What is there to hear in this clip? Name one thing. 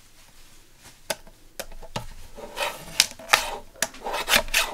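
Paper rustles and slides under hands.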